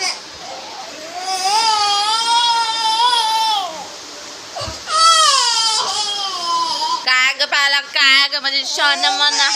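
A young girl sings loudly nearby.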